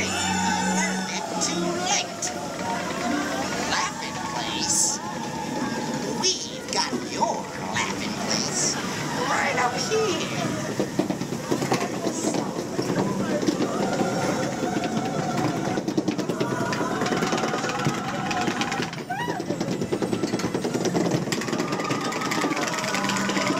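A group of young people chatter and talk over each other nearby.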